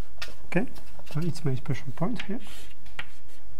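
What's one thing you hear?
A young man speaks calmly, as if lecturing.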